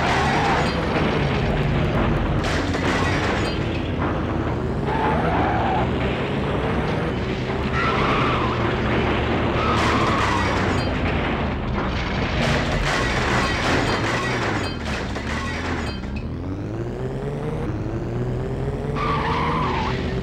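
A racing car engine roars, rising and falling in pitch as it speeds up and slows down.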